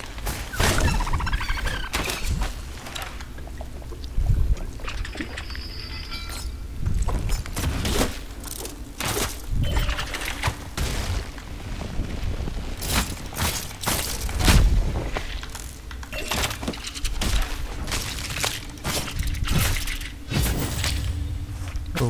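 Blades slash and strike creatures with sharp hits.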